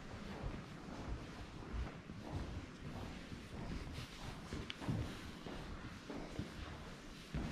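Footsteps tap on a wooden floor in a quiet echoing room.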